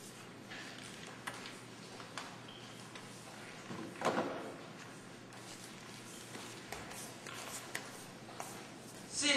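An eraser rubs across a blackboard.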